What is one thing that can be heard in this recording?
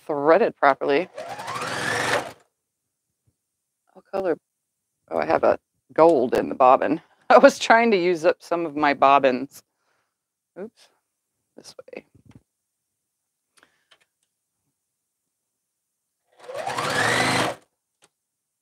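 A straight-stitch sewing machine runs in bursts, stitching through fabric.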